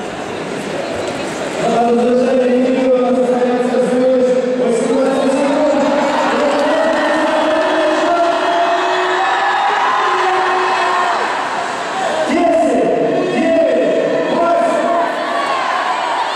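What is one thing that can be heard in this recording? A crowd cheers and chants in a large echoing arena.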